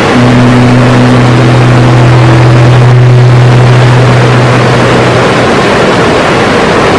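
A river rushes steadily.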